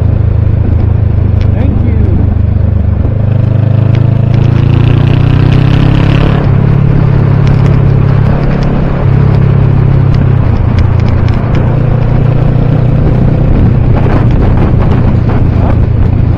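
A motorcycle engine hums steadily up close, shifting pitch as it changes gear.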